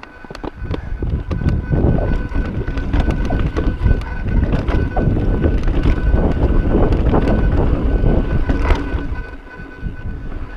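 Bicycle tyres rumble and rattle over a rocky dirt trail.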